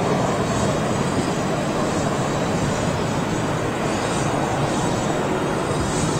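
A second airliner's jet engines whine and rumble as it turns close by.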